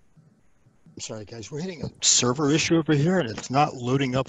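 A man speaks clearly and steadily over an online call.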